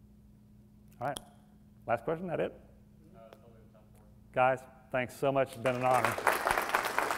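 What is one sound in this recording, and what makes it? A man speaks with animation to an audience, with short pauses between phrases.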